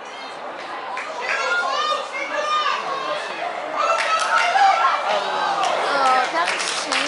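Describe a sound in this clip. Young women shout to each other outdoors in the distance.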